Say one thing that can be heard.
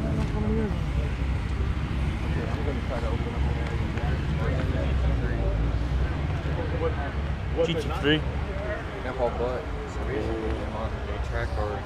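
Young men chat nearby in the distance.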